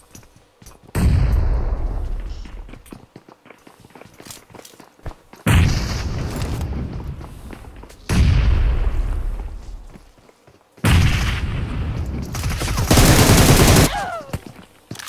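Smoke grenades burst open one after another with a loud rushing hiss that fades away.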